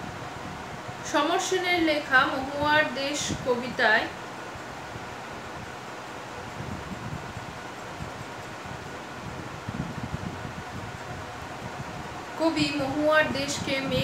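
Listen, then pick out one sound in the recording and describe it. A young woman speaks calmly and close by, in short bursts.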